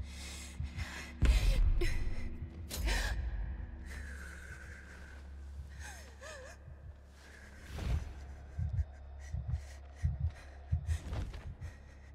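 A creature's heavy footsteps thud across a wooden floor.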